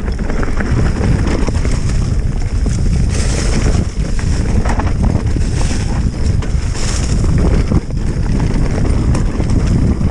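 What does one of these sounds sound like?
Bicycle tyres roll and crunch over dry leaves and rough ground.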